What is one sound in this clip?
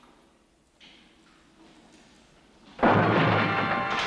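Fists thud in a scuffle between men.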